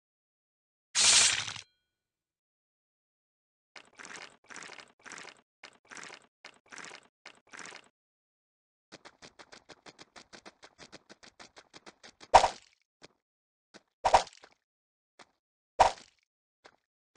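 Sharp splats burst out now and then.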